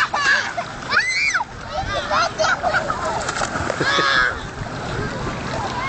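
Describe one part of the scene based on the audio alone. Water splashes as a child is lifted and dropped.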